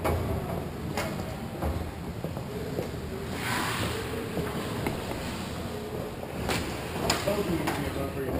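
Skate blades scrape across ice in a large echoing rink.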